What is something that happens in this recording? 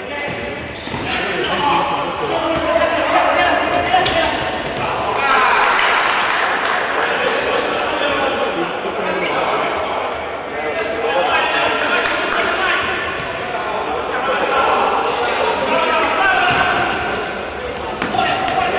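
A crowd cheers and shouts in a large echoing indoor arena.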